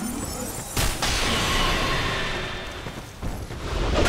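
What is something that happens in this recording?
A magic spell bursts with a bright whoosh.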